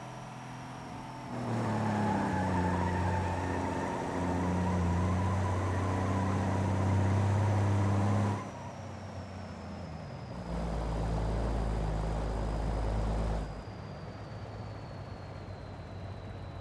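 A truck's engine idles with a low hum.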